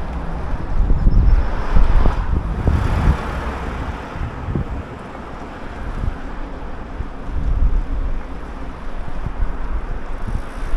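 A car drives along the street nearby.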